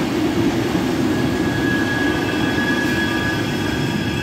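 A train rumbles past close by.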